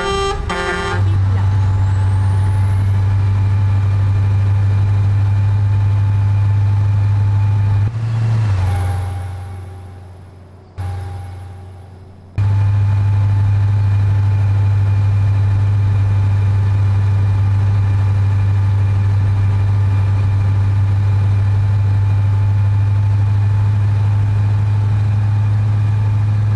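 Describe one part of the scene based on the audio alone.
A truck engine drones steadily with a low hum.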